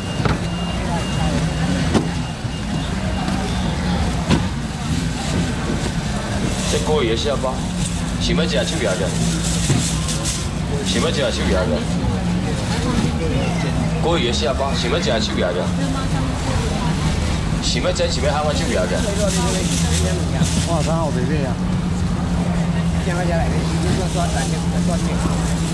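A crowd of men and women chatter all around outdoors.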